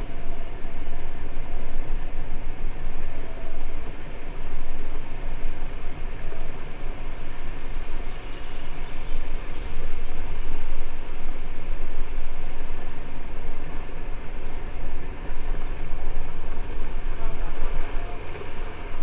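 Tyres rumble over a brick road.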